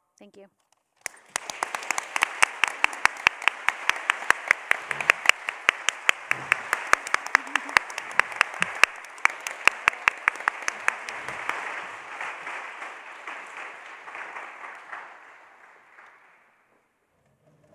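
People clap their hands in steady applause that slowly fades.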